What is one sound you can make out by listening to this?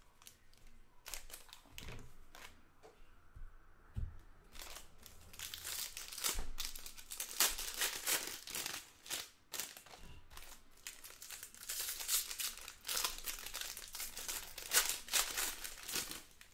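Foil wrappers crinkle and rustle as they are handled and torn open up close.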